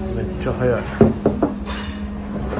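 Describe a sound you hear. Ceramic bowls clunk down onto a wooden table.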